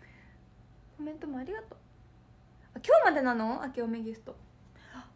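A young woman speaks close to the microphone with animation.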